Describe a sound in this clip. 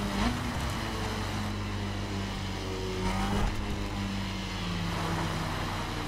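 Wind rushes past a fast-moving motorcycle.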